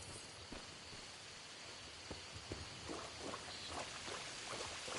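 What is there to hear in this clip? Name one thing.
Footsteps crunch over dirt and shallow water.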